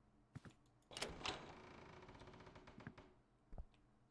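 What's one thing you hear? A wooden door creaks slowly open.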